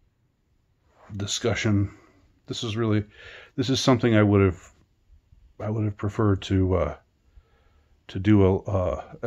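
A man speaks sleepily and softly, close by.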